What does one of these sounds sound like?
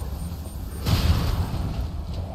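A gunshot blasts with a short echo.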